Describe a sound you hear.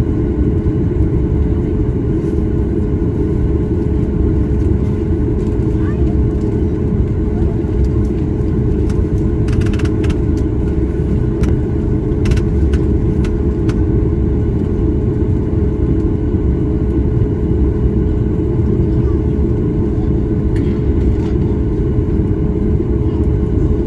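A jet's engines rumble low and steadily, heard from inside the cabin as the plane taxis.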